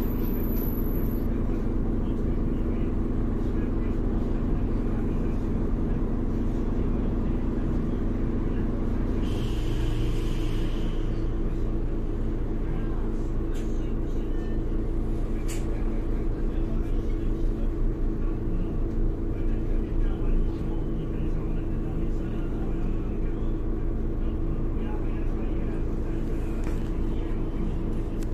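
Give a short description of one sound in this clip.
A bus rattles and vibrates as it moves.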